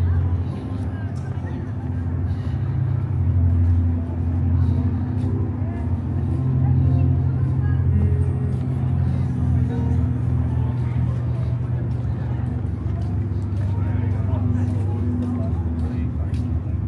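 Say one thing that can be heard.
Footsteps tap softly on paving stones.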